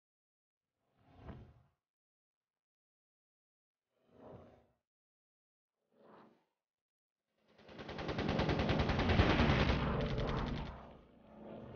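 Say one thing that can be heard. Machine guns fire in short rapid bursts.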